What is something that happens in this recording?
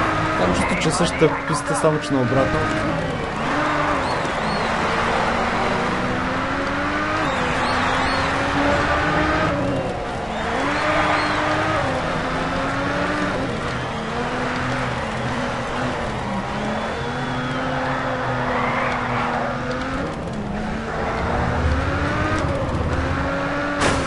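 Tyres screech as a car slides around corners.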